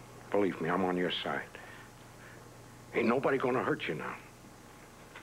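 An older man speaks firmly and close by.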